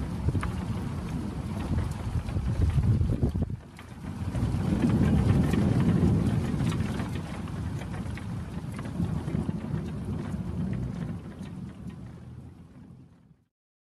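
Thunder rumbles deeply and rolls on, fading away at the end.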